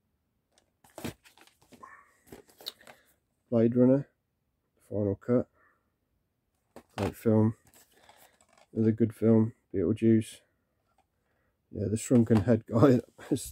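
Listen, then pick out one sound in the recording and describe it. Plastic disc cases clack as they are set down on a pile.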